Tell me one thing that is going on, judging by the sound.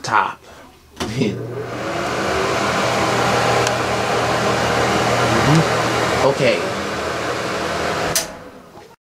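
A ceiling exhaust fan switches on and whirs steadily, then stops.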